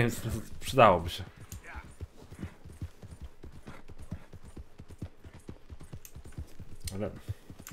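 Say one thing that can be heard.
A horse's hooves clop steadily on a dirt path.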